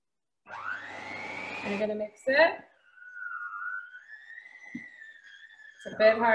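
An electric hand mixer whirs steadily as it beats a batter.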